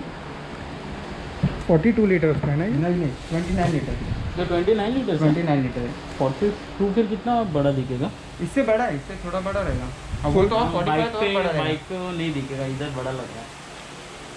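Plastic wrapping crinkles as it is pulled off.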